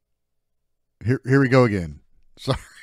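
A man speaks up close into a microphone with animation.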